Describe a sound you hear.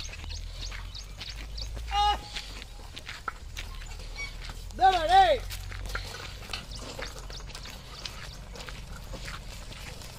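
Hooves clop on a paved road as a bullock cart moves along.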